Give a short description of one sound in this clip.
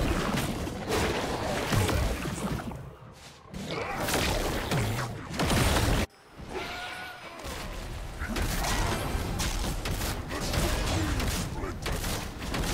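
Magic spells crackle and whoosh during a fantasy battle.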